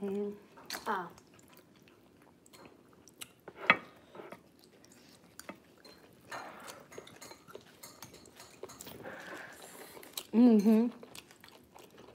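Spoons and chopsticks clink against ceramic bowls.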